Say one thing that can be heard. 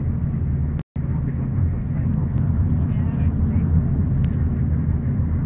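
A vehicle's engine and tyres rumble low from inside as it drives along a road.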